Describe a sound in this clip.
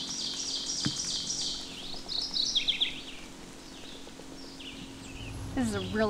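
A small bird sings a high, buzzy, rising song close by.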